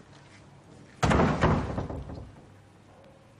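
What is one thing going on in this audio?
A door swings shut with a heavy thud in a large room.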